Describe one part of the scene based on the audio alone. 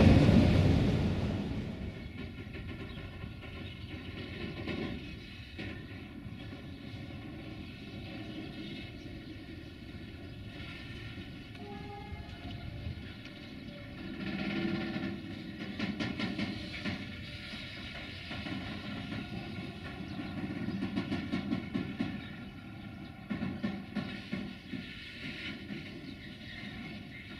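A long freight train rolls steadily past, its wheels clattering rhythmically over rail joints.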